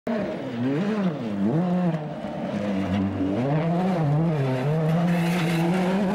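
A rally car engine roars and revs up and down through its gears.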